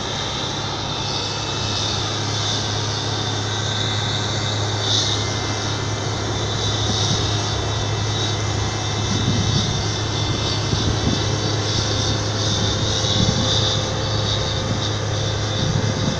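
A combine harvester engine drones steadily nearby.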